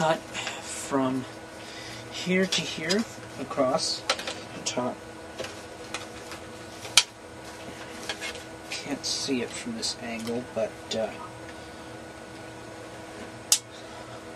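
A metal panel knocks and rattles as it is handled.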